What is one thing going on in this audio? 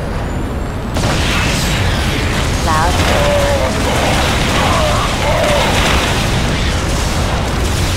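Game explosions and weapon fire crackle and boom in a battle.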